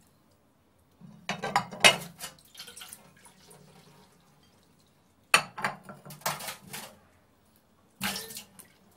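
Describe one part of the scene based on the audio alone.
Water splashes over dishes in a sink.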